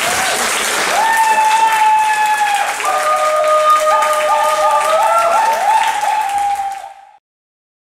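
A young woman sings into a microphone through loudspeakers.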